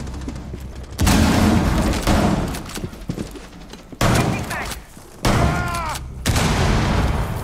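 A rifle fires sharp, loud shots in short bursts.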